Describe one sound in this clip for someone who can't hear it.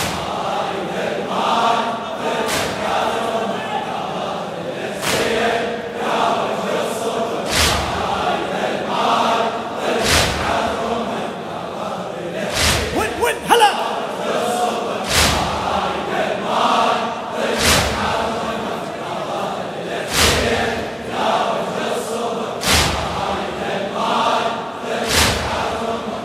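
A large crowd of men chants along in unison.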